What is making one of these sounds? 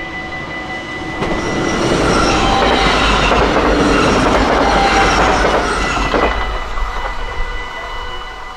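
A train rumbles past close by, loud and then fading.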